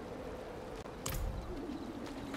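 A game menu closes with a soft click.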